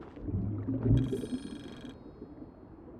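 A soft chime sounds as a reward pops up.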